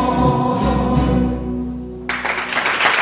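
A group of men and women sing together.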